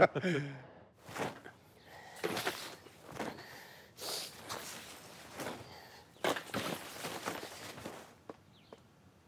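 Clothes rustle and flop as they are tossed about.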